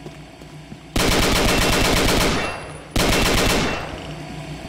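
A rifle fires rapid automatic bursts.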